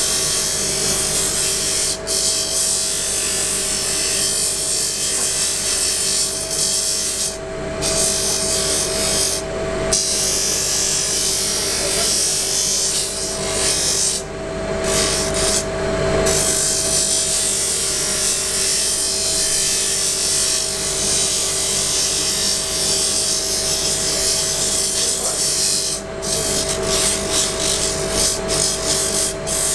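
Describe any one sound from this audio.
A small wooden piece grinds and hisses against a spinning sanding disc.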